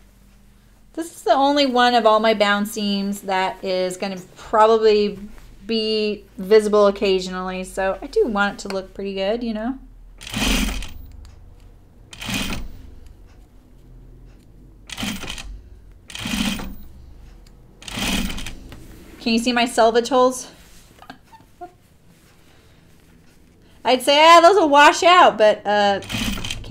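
An older woman speaks calmly and clearly into a microphone.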